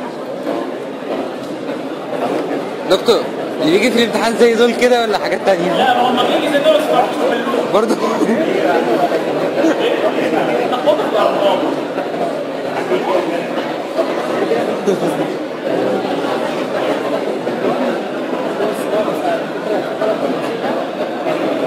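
A middle-aged man lectures loudly in an echoing room.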